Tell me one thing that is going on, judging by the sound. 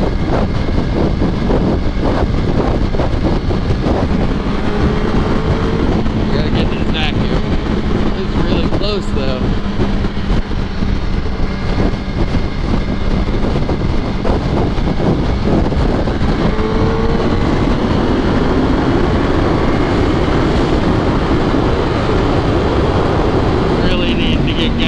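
A motorcycle engine hums steadily at highway speed.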